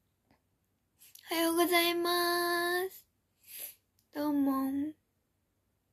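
A young girl speaks in a high, sing-song voice close to the microphone.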